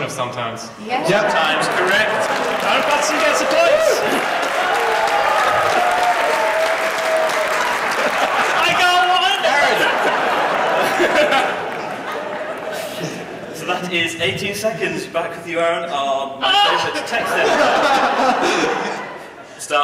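A man speaks into a microphone, heard through loudspeakers in a large hall.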